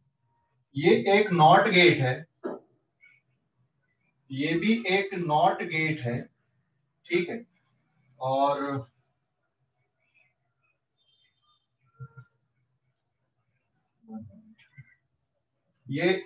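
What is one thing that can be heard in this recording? A man speaks calmly and clearly, as if teaching, close by.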